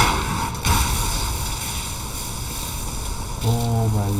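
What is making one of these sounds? Electricity crackles and buzzes.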